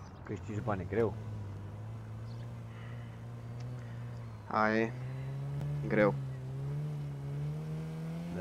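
A car engine hums steadily and slowly rises in pitch.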